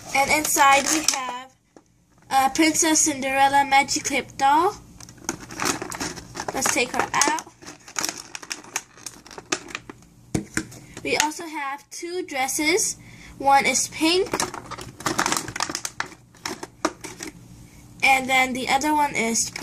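Stiff plastic packaging crinkles and taps as hands handle it.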